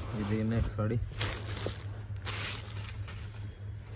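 Fabric rustles as it is spread out.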